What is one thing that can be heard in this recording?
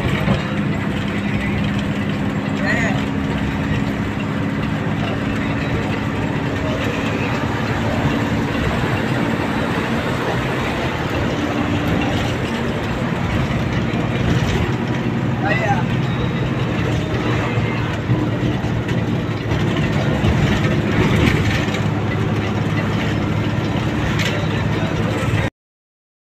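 A bus engine drones steadily from inside the bus.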